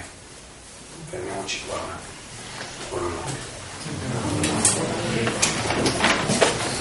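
A middle-aged man speaks calmly to a small room, heard from a few steps away.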